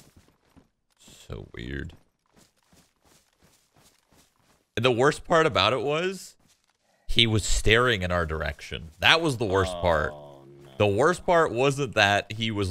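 A young man talks animatedly and close into a microphone.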